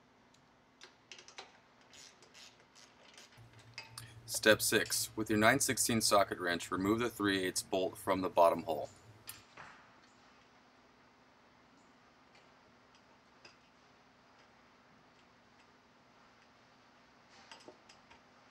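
Small metal and plastic parts click and tap against each other close by.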